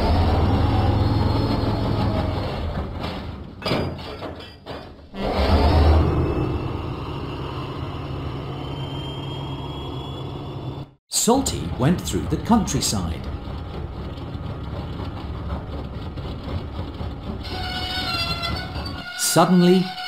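A diesel engine rumbles as it rolls along the rails.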